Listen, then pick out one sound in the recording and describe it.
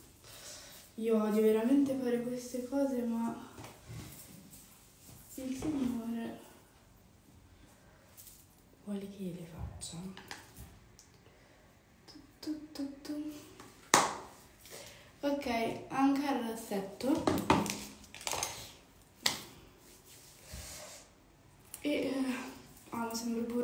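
A young woman talks calmly and close by, in bursts with pauses.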